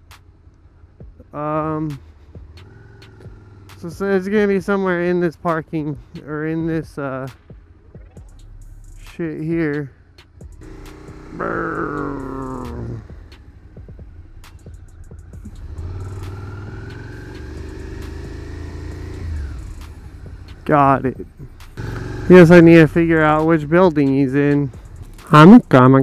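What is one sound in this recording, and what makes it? A motorcycle engine idles and revs up and down while riding.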